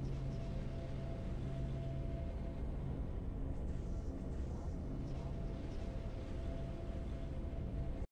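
Triumphant game music plays steadily.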